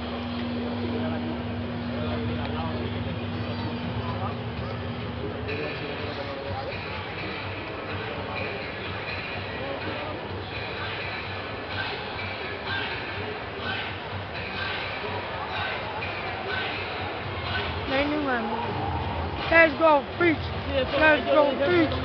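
A large crowd murmurs in a big open stadium.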